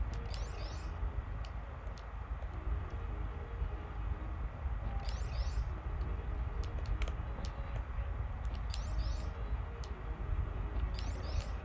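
Retro video game music plays with a low, droning pulse.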